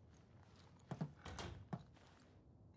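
A door closes with a soft thud.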